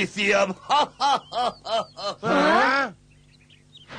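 A second young man shouts along nearby.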